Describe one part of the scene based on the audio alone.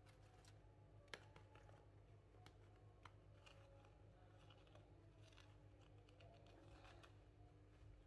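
Fried dough pieces rustle and scrape softly as they are rolled in sugar in a plastic tub.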